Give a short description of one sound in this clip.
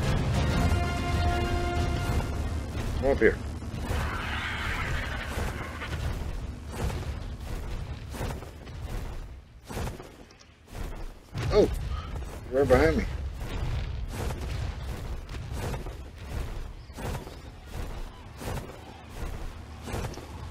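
Large wings flap in steady, repeated beats.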